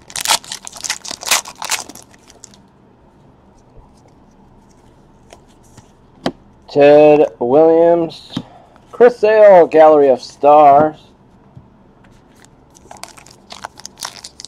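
A foil wrapper crinkles as hands tear open a card pack.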